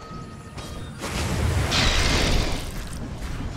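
A fiery blast whooshes and roars.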